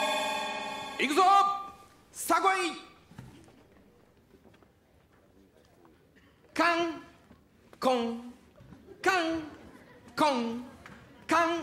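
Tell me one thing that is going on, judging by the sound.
A man makes short, loud vocal sounds, imitating a ping-pong ball being hit back and forth.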